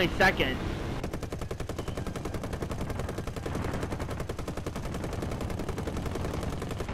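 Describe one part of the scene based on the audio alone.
Machine guns fire in a rapid, steady stream.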